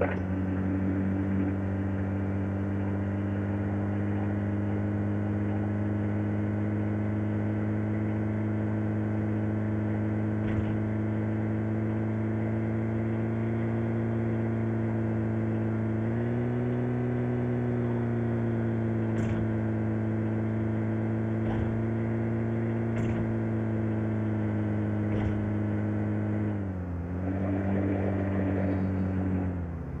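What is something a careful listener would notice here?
A vehicle engine drones steadily, rising and dipping in pitch as it drives over rough ground.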